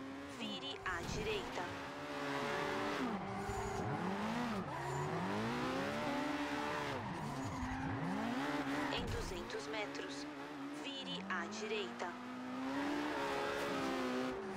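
Tyres squeal on asphalt as the car slides sideways.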